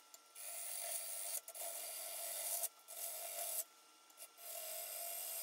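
A gouge scrapes and hisses against spinning wood in bursts.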